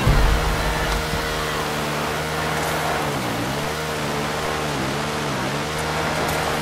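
A quad bike engine drones steadily, dipping and rising in pitch as the rider eases off and speeds up.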